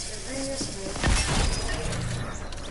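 A gun fires a quick burst of loud shots.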